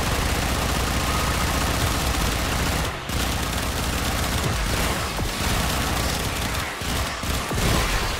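Energy blasts crackle and whoosh rapidly from a weapon.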